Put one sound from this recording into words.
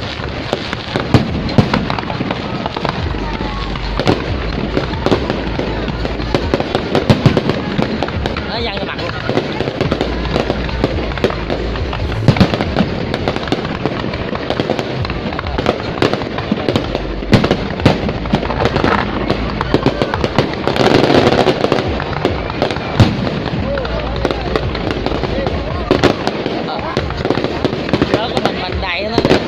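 Fireworks pop and crackle in rapid bursts.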